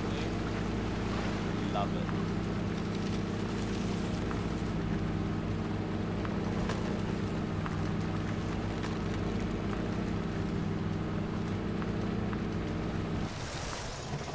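A truck engine rumbles steadily and then stalls.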